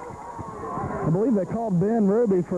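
Young men on the sideline shout and cheer loudly.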